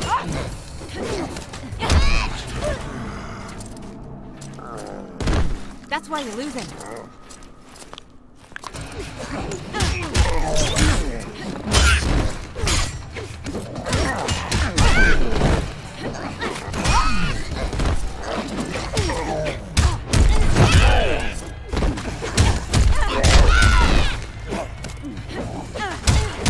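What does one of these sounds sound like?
Heavy punches and kicks land with loud, thudding blows.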